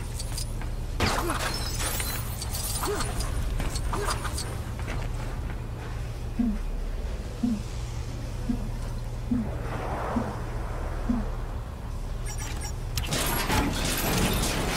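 Sparkling clinks and jingles burst out.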